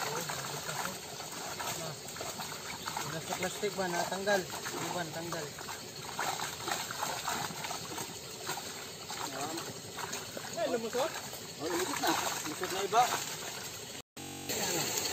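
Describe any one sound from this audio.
Fish splash and thrash in shallow water.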